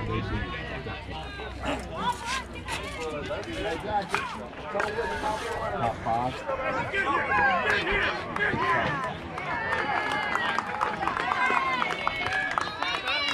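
A crowd of children and adults chatters and calls out nearby outdoors.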